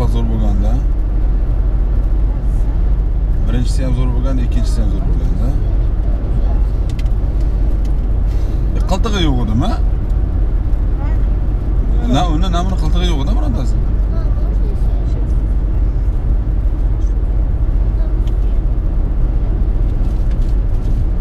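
Tyres roar steadily on a highway, heard from inside a moving car.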